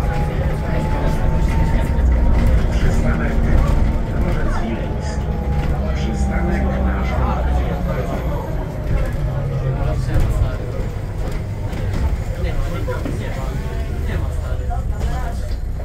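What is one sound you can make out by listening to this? Bus tyres roll over the road.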